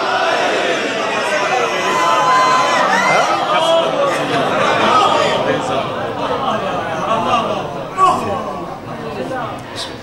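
A young man speaks with animation into a microphone, heard over a loudspeaker.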